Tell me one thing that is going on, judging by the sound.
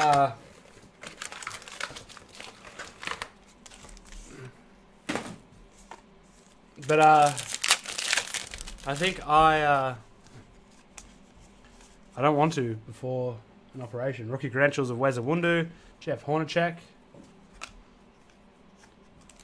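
Card packs rustle and crinkle as they are handled.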